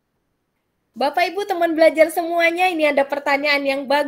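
A middle-aged woman speaks cheerfully over an online call.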